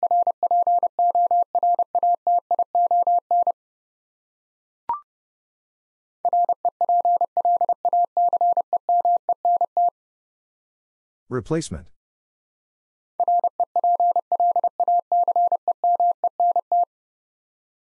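A telegraph key taps out a fast, steady run of high Morse code beeps.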